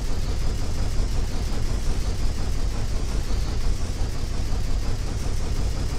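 A heavy machine gun fires in rapid, continuous bursts.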